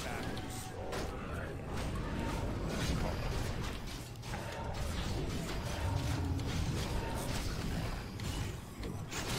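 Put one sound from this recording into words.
Game swords clash in a busy battle.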